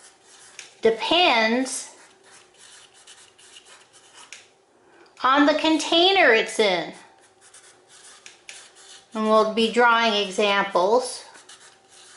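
A felt-tip marker squeaks and scratches across paper.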